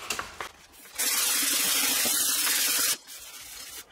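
A sanding block scrapes across a metal panel.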